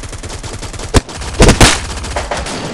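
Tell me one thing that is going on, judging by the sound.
A rifle fires a few sharp, loud shots.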